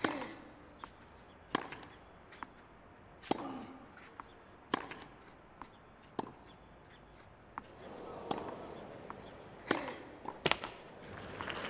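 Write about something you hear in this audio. Rackets strike a tennis ball back and forth with sharp pops.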